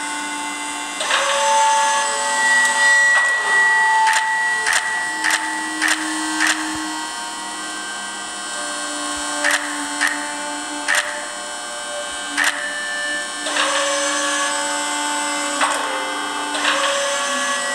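Electronic game tones chime and beep.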